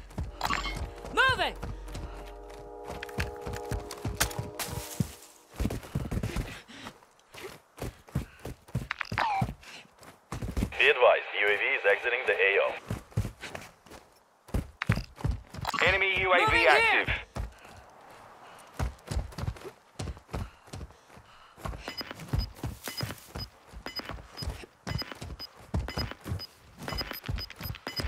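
Footsteps crunch steadily on dirt and rock.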